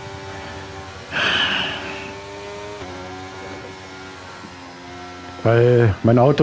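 A racing car engine whines at a steady, high pitch.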